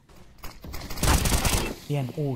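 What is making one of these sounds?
Rifle gunfire rattles in quick bursts.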